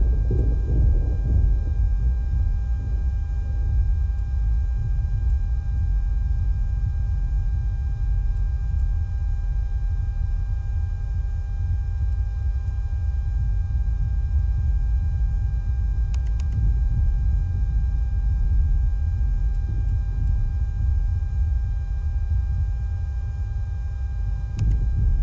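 A helicopter engine rumbles low and steady.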